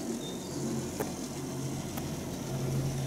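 A chairlift clatters as it passes over the pylon wheels.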